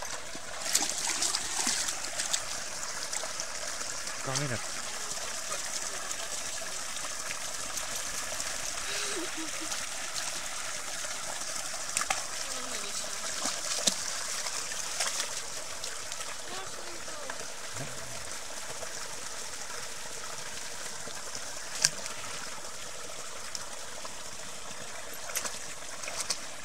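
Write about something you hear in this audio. Water rushes and splashes steadily from a pipe into a stream.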